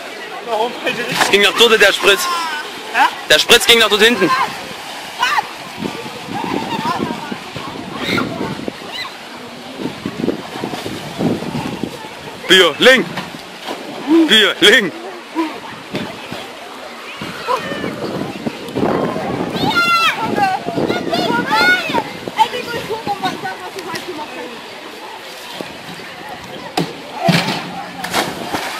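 Water splashes loudly as someone jumps into a pool.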